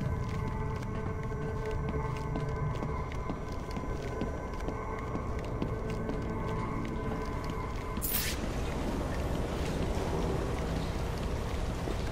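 Heavy footsteps walk steadily on a hard floor.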